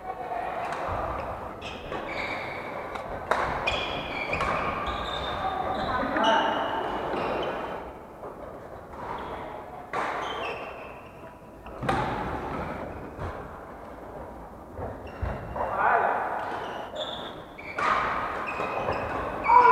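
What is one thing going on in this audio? Shuttlecocks are struck with sharp pops of rackets in an echoing hall.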